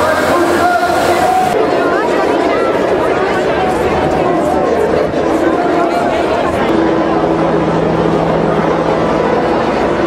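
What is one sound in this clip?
A large crowd of people chatters outdoors.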